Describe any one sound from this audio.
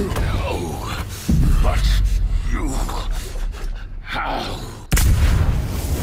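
Heavy blows land with loud crashing impacts.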